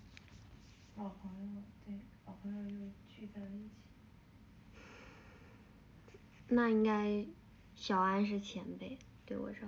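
A young woman speaks softly and closely into a phone microphone.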